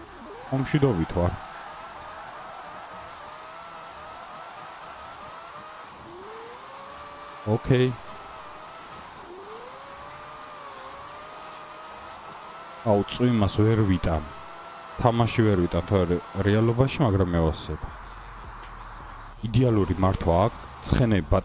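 A car engine revs high and rises and falls in pitch.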